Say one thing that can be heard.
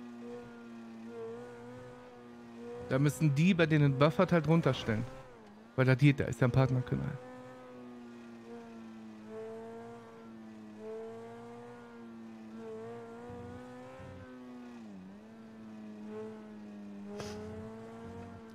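A sports car engine hums steadily as the car drives along.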